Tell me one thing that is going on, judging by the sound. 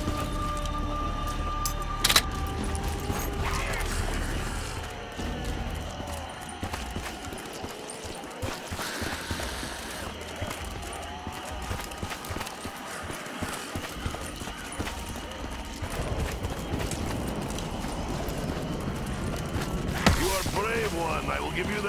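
Footsteps tread over soft, damp ground.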